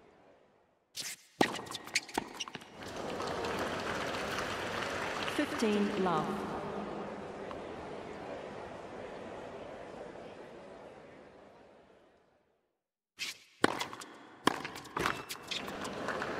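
A tennis ball is struck by rackets in a rally.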